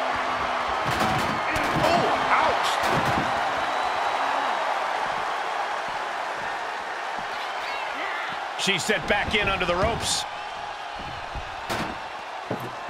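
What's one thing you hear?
Heavy blows thud and slam.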